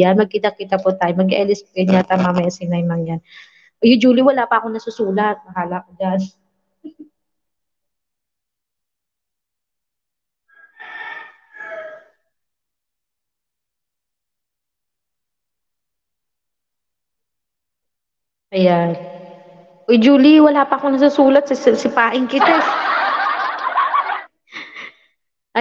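A woman speaks close into a microphone, with pauses.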